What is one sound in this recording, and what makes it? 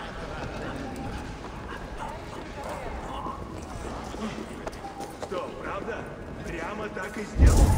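Footsteps walk on a stone floor.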